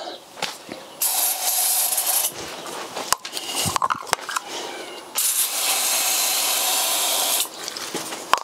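An aerosol can sprays with a sharp hiss in short bursts.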